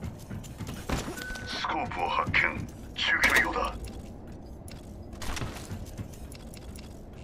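Items are picked up with short electronic chimes.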